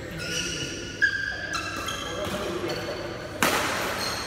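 A racket smacks a shuttlecock.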